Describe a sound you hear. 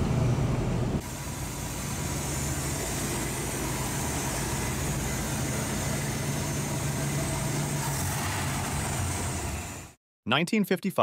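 A car engine idles steadily up close.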